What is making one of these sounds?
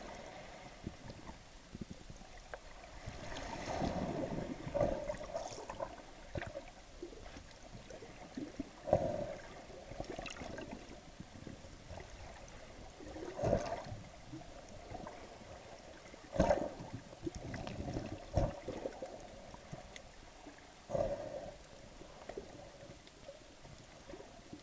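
Water sloshes and churns underwater in muffled surges.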